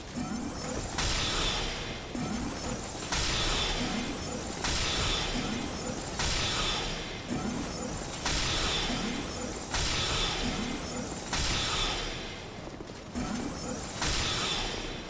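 A magic spell fires with a loud hissing whoosh, again and again at a steady pace.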